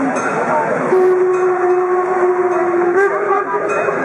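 A locomotive whistle blows with a steady tone.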